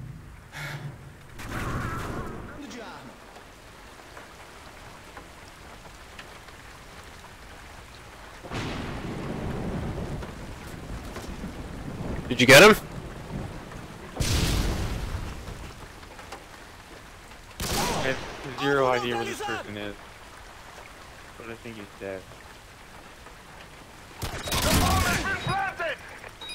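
Gunshots ring out close by.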